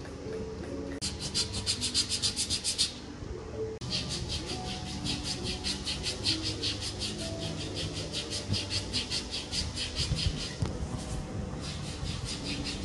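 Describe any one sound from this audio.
Hands rub and pat a bare foot in a quick, steady rhythm.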